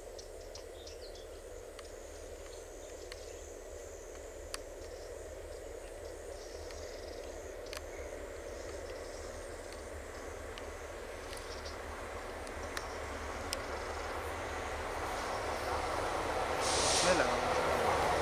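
A train rumbles closer through a tunnel, growing steadily louder.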